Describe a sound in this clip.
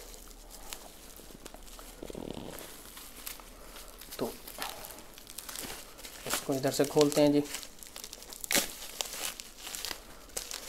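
Plastic packaging crinkles and rustles under fingers.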